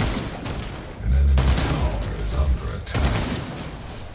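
Game explosions boom with deep rumbles.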